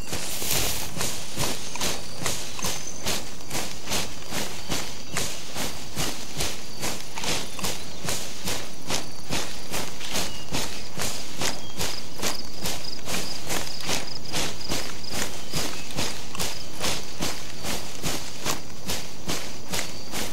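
Quick footsteps swish through tall grass.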